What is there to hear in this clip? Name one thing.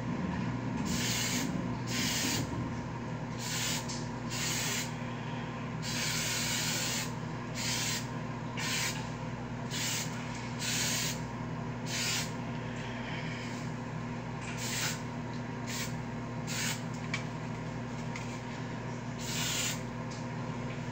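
A spray can hisses in short, repeated bursts.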